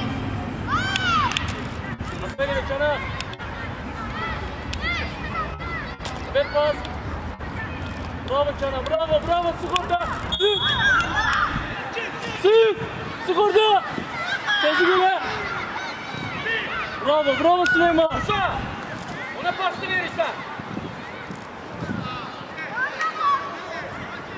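Young boys shout and call out across an open outdoor pitch.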